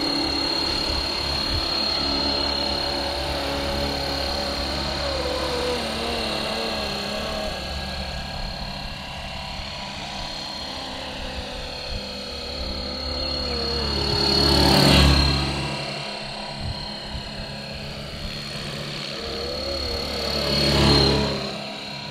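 A model helicopter's small motor whines steadily, rising and falling in pitch.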